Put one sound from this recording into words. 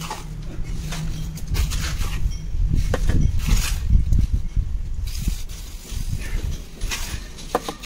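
A clay brick is set down and tapped into mortar.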